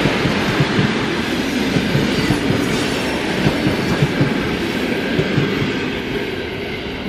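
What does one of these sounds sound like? A passing train rumbles loudly close by, its wheels clattering rhythmically over the rail joints.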